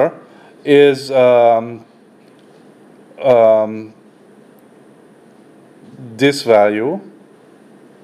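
A middle-aged man speaks calmly into a microphone in short phrases with pauses.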